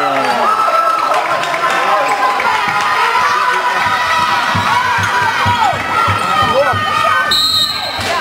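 Basketball players' shoes squeak on a court floor.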